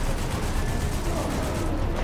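Gunfire crackles.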